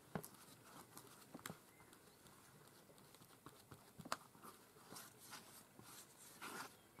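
A brush strokes softly across a board.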